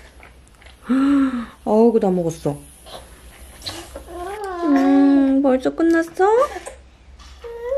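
A toddler whines and babbles in a high voice.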